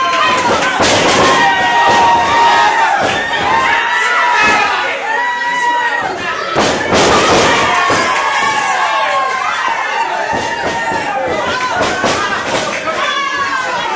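A crowd shouts and cheers in an echoing room.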